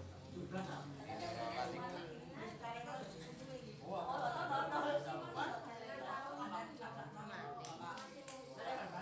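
Several young women and men chat casually nearby, their voices overlapping.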